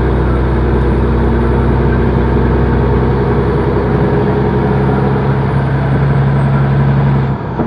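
A truck engine hums steadily from inside the cab.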